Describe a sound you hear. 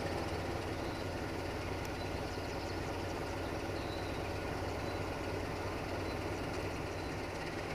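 Train wheels clatter on the rails.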